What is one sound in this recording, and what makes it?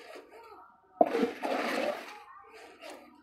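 A metal trowel scrapes and scoops wet gravelly cement.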